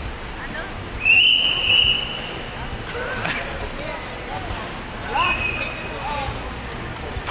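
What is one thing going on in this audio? A woman squeals with excitement nearby.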